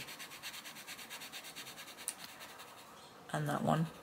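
A coloured pencil scratches rapidly back and forth on paper.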